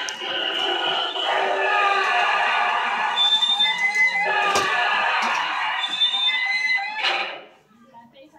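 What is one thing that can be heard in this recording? A prop's speaker plays loud, eerie moaning and shrieking.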